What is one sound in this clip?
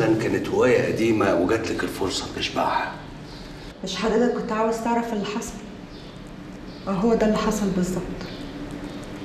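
A woman speaks quietly and tensely, close by.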